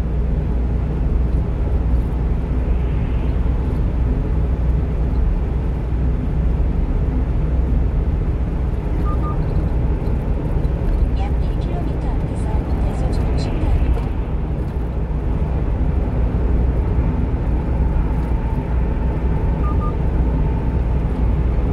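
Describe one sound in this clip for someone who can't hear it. A car engine drones steadily from inside the car.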